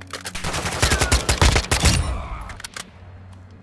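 A rifle fires a rapid burst of loud shots that ring out.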